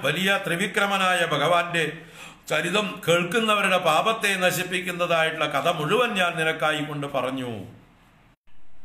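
An older man speaks close by in a slow, chanting voice.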